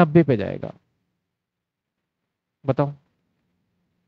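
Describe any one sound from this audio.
A man speaks calmly into a close microphone in short bursts.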